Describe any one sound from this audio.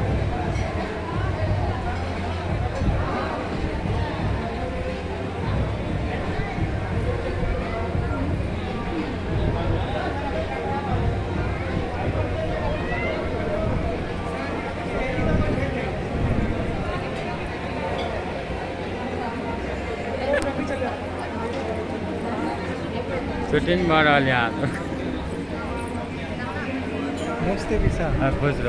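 A crowd of men and women chatters loudly indoors.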